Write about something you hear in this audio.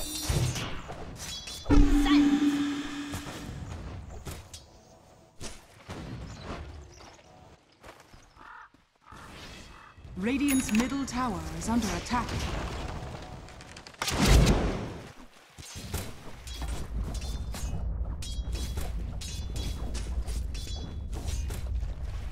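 Weapons strike and clash in quick sharp blows.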